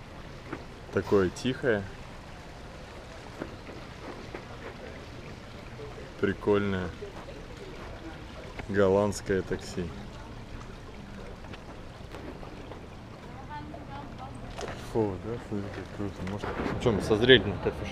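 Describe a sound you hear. A young man speaks close by, in short bursts.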